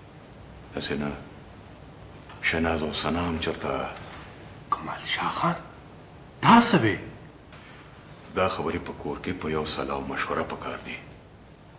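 An older man speaks in a low, serious voice.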